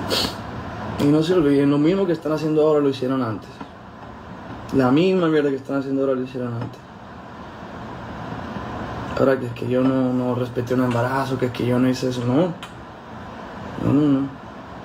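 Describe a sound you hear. A young man speaks calmly and closely into a phone microphone.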